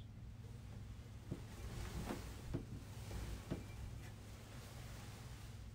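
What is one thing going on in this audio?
A man murmurs quietly, close by.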